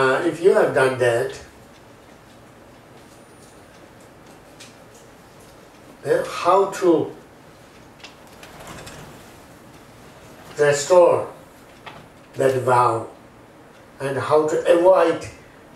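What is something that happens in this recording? A middle-aged man speaks calmly into a clip-on microphone in short phrases with pauses.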